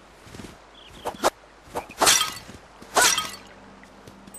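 A sword swishes through the air in quick slashes.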